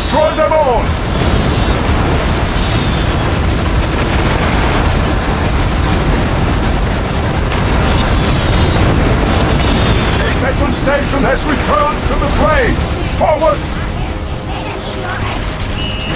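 A propeller aircraft engine roars steadily.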